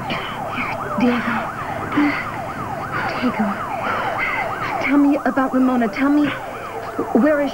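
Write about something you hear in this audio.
A woman speaks urgently and close by.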